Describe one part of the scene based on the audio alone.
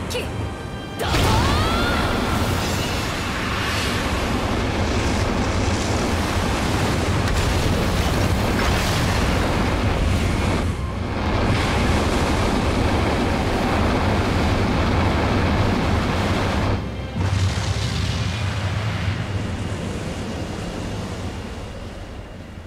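A huge blast of energy roars and rumbles.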